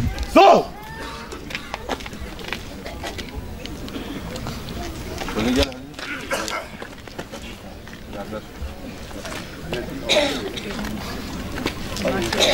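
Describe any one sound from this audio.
Men talk nearby in short, quiet exchanges outdoors.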